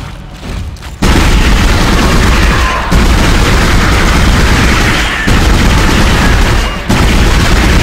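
A heavy weapon fires in loud, rapid bursts.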